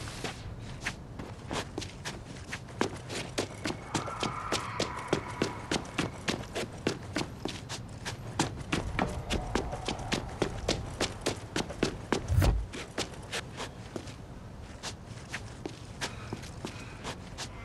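Footsteps tap steadily and quickly on hard pavement.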